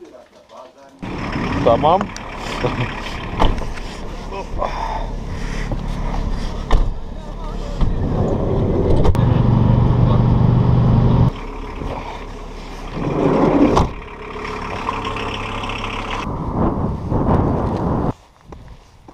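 A van engine hums steadily.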